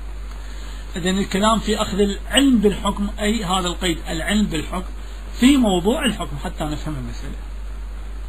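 A man speaks calmly and steadily into a microphone.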